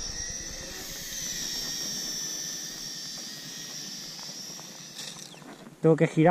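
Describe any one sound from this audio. A small drone's propellers whine with a high, wavering buzz.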